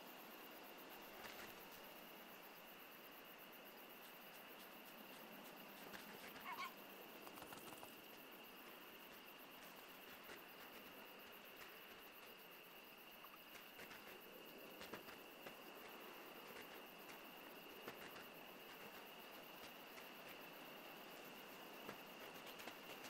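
Paws crunch softly through snow.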